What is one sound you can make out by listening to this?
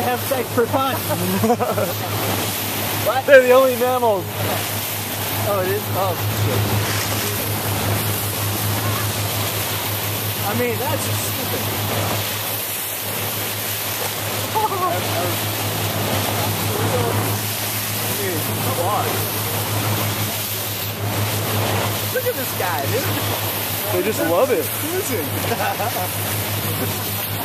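Water rushes and splashes against a moving boat's bow.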